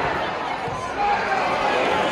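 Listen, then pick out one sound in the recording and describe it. A stadium crowd roars as the ball nears the goal.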